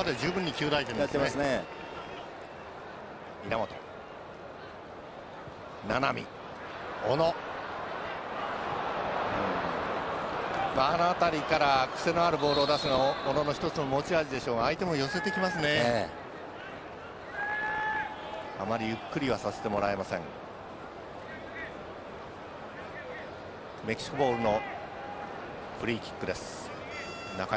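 A large stadium crowd murmurs and roars, swelling at times.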